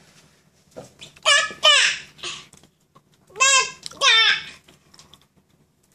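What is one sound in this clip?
A toddler laughs close by.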